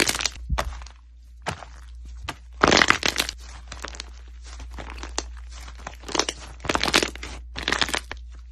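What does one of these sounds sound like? Hands squish and squeeze soft slime, with crackling pops.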